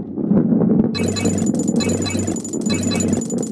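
Coins chime as they are collected.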